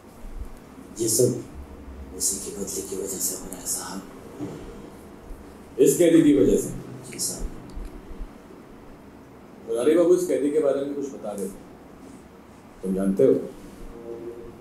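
A man speaks in short, calm bursts close by.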